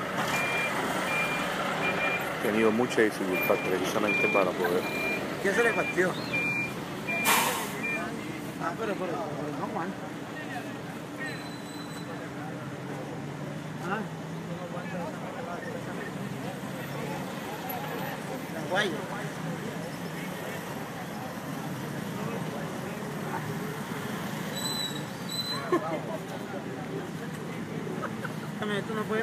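A crane truck's engine idles steadily at a distance.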